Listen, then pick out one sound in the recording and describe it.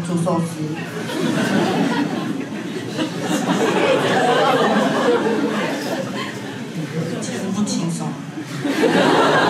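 A young woman speaks with animation into a microphone, heard through loudspeakers.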